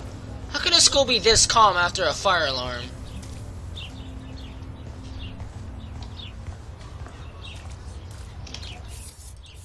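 Footsteps tap on a paved path.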